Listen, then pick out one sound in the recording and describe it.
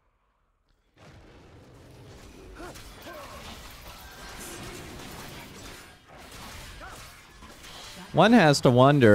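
Video game effects whoosh and clash in a fight.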